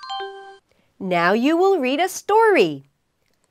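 A young woman speaks cheerfully and clearly into a close microphone.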